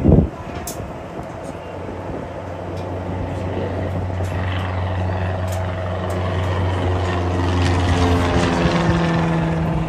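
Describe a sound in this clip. A seaplane's engine drones as it skims across the water.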